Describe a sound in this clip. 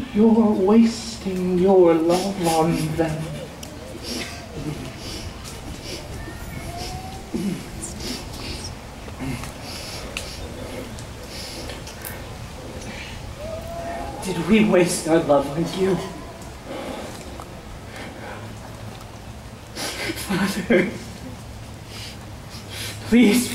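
A man declaims loudly outdoors, his voice carrying in the open air.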